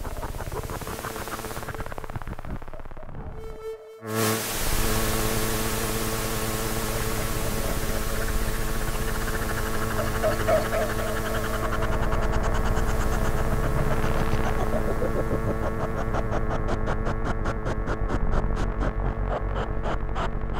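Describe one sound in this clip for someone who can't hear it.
Electronic music with droning, buzzing tones plays loudly, then swells suddenly and keeps pulsing.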